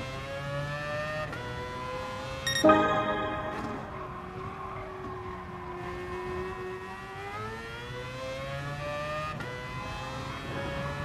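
A racing car engine roars, dropping in pitch through a corner and then revving up again.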